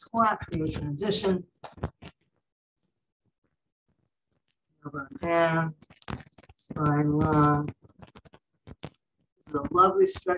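A woman speaks calmly, giving instructions over an online call.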